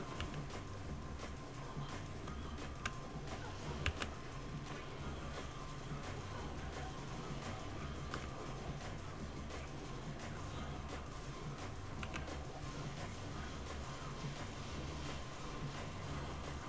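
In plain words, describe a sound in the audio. Fire crackles steadily.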